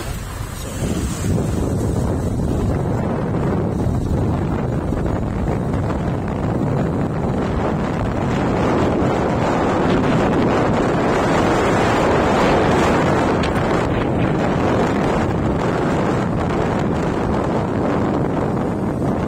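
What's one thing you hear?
Wind rushes loudly past, growing stronger as the ride speeds up.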